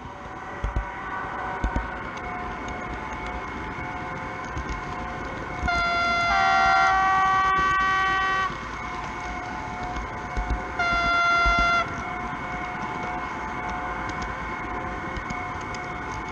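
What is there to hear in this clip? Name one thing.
A small electric train motor whirs steadily along the track.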